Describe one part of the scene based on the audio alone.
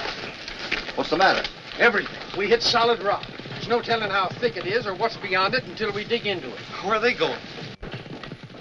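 Men talk with one another up close.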